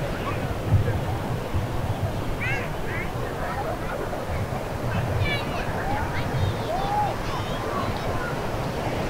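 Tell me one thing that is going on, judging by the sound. Waves wash onto the shore.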